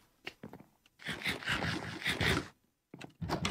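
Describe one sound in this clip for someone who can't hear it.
Someone crunches and munches food.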